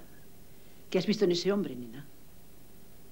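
A woman speaks firmly close by.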